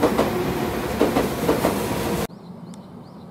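A train rumbles loudly along the tracks.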